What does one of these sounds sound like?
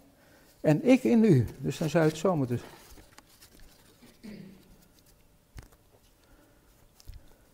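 Cardboard discs rustle and tap in a man's hands.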